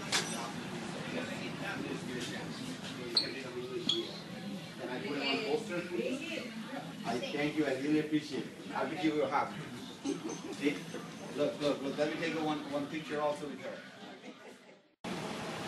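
Several women and men talk with animation nearby.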